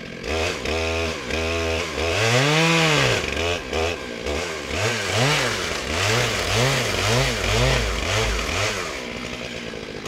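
A chainsaw revs up and down repeatedly, close by.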